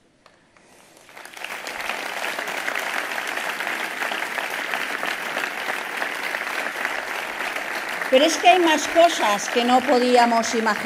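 A crowd applauds and claps steadily.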